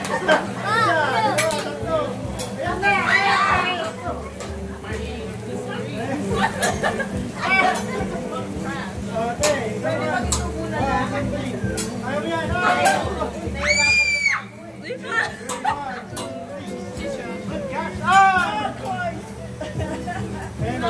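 Young women laugh and cheer loudly nearby.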